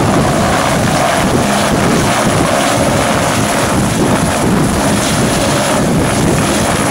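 Helicopter rotor blades chop the air in a steady thumping beat.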